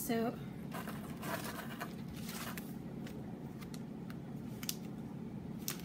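A cardboard box rustles in a person's hands.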